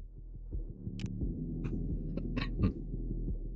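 Soft electronic menu clicks sound as a selection changes.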